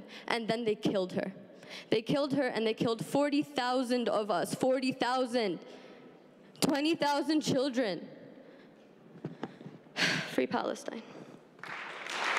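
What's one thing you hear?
A young woman speaks with feeling into a microphone in a large echoing hall.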